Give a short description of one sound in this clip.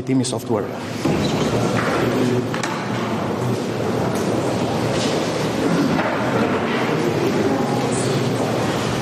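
A crowd of people murmurs and chatters in a room.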